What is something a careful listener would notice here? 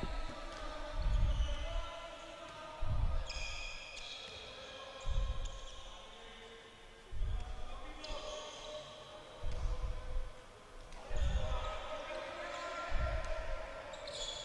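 A ball bounces with heavy thuds on a wooden court in an echoing hall.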